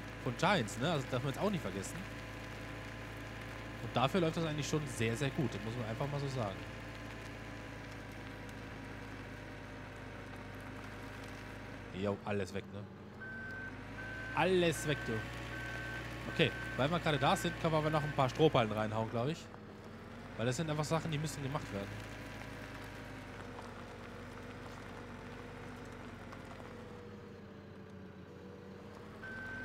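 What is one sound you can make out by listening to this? A loader's diesel engine hums steadily.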